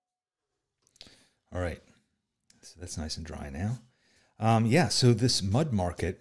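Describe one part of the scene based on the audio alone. An older man speaks calmly into a close microphone.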